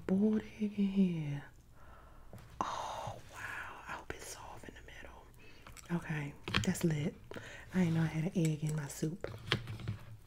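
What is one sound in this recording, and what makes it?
A woman speaks softly and close into a microphone.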